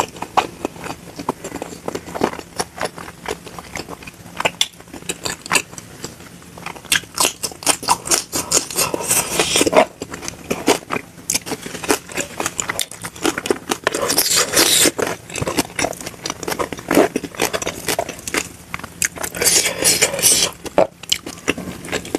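A young woman chews food loudly and wetly, close to a microphone.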